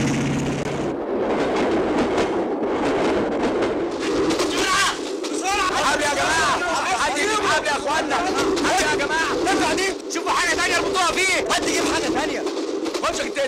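A crowd of men and women shout and scream in panic.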